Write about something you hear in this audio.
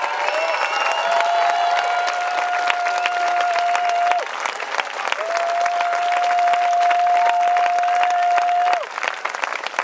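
A singer holds long, steady high notes through a loudspeaker, heard in a large outdoor space.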